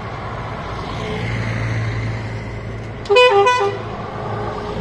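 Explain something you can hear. A bus engine rumbles as it drives past close by.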